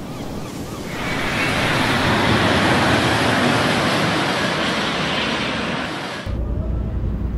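A jet airliner roars as it flies low.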